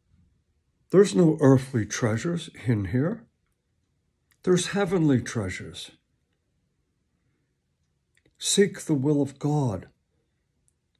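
A middle-aged man speaks calmly and close up, in short bursts with pauses.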